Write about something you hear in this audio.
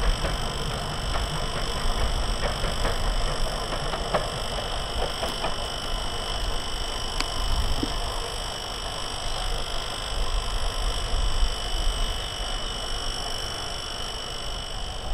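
A diesel locomotive rumbles as it rolls slowly along the track.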